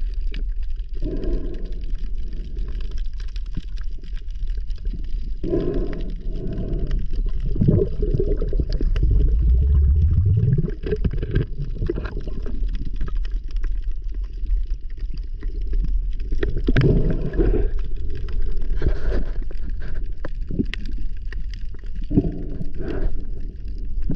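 A scuba diver breathes out through a regulator underwater, and bubbles gurgle.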